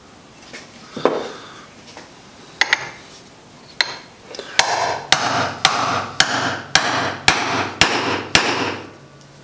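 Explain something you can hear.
A hammer strikes metal in sharp, repeated blows.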